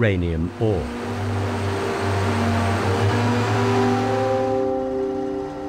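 A heavy loader engine rumbles nearby.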